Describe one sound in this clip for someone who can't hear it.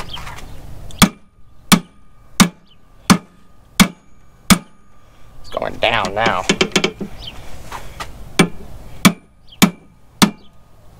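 A metal wrench clanks sharply against a machine at a steady pace.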